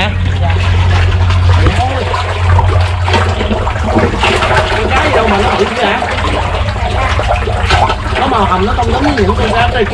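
Fish splash and thrash in water.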